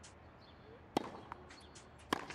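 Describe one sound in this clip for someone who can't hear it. A tennis ball bounces on the court a few times.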